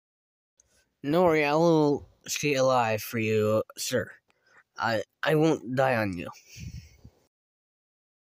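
A second young man answers calmly into a microphone.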